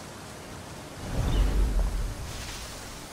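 A heavy thud sounds as a figure drops into bushes.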